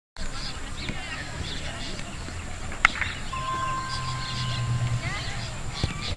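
A football thuds as it is kicked on grass.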